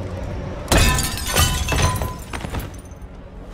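Glass shatters loudly.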